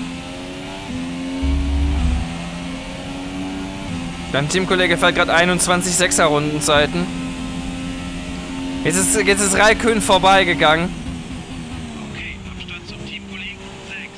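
A racing car engine whines at high revs, rising in pitch and dropping with each gear change.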